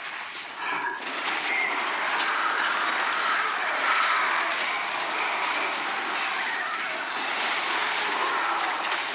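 Video game combat effects crackle and burst with magic spell sounds.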